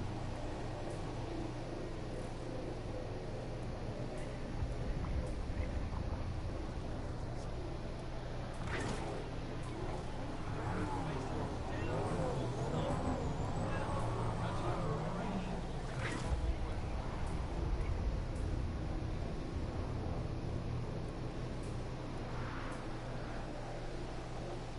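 A hoverboard engine hums steadily.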